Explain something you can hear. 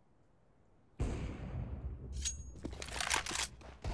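A sniper rifle fires a loud, sharp shot.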